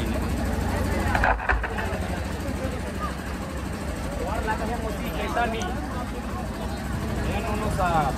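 A crowd of men and women chatter outdoors.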